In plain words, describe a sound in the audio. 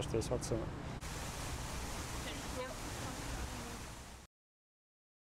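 A teenage girl speaks calmly.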